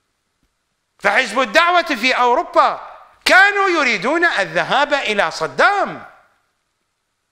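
A middle-aged man speaks emphatically into a close microphone.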